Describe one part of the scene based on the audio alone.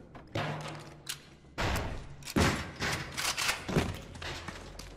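A shotgun is loaded with sharp metallic clicks.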